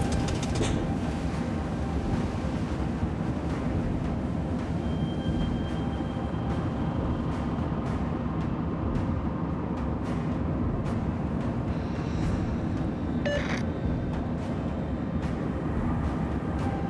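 Waves splash and rush against a submarine's hull.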